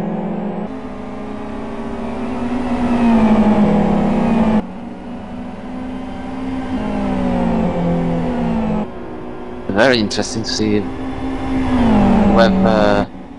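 Racing car engines roar loudly and shift through the gears.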